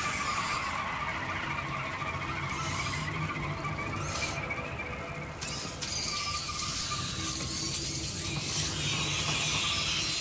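A fire crackles and hisses nearby.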